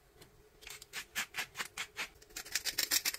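A salt grinder grinds in quick bursts.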